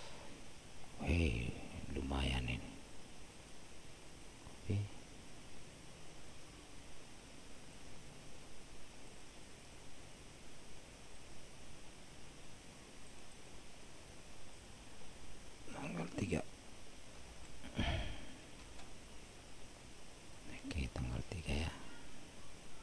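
A man speaks briefly and calmly into a microphone close by.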